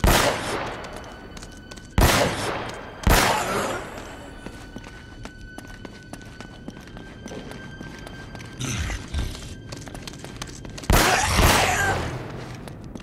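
Pistol shots ring out loudly with echoing reverberation.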